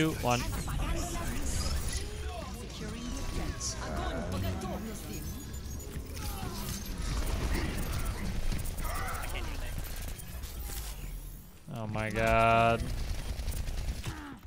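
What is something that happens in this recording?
Guns fire in rapid bursts in a video game.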